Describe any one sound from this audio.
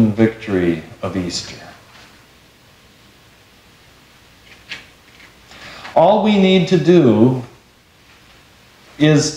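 A middle-aged man preaches calmly through a microphone in a softly echoing hall.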